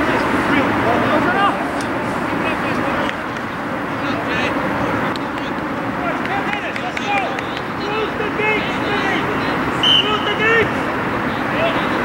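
Young men shout and call to each other from across an open field.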